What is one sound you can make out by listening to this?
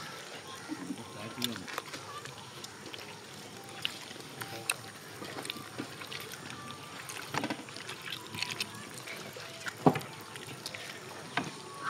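Boys chew and smack food noisily.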